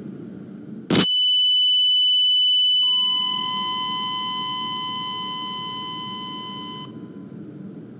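A high, steady ringing tone follows and slowly fades.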